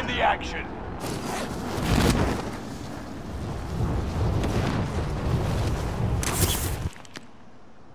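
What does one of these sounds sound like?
Wind rushes loudly during a fall through the air.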